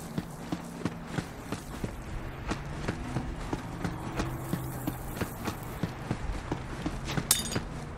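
Footsteps crunch on dry ground at a quick, steady pace.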